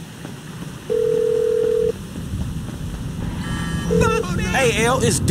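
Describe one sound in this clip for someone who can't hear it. A phone rings with a steady electronic tone.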